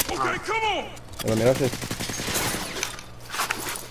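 A rifle is put away with a metallic rattle.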